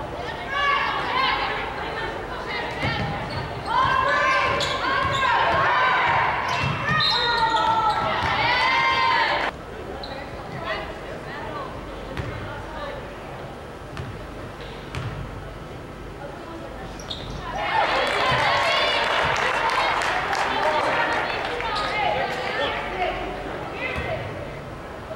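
Basketball sneakers squeak on a hardwood floor in a large echoing gym.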